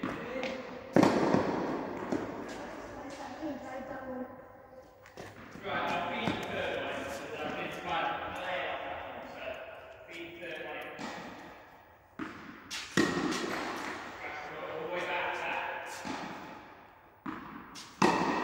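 A tennis racket strikes a ball with a sharp pop that echoes through a large hall.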